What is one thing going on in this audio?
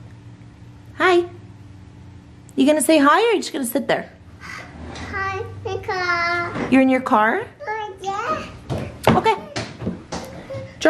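A toddler girl babbles and squeals close by.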